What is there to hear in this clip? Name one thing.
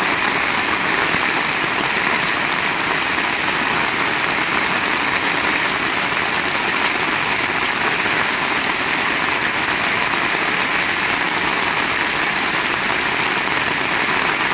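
Steady rain falls and patters on a wet street outdoors.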